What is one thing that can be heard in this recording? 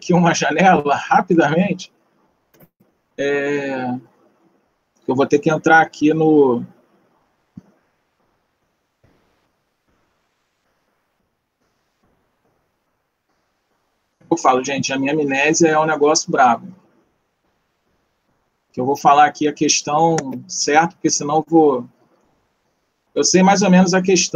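A young man talks calmly and close through an online call, pausing between phrases.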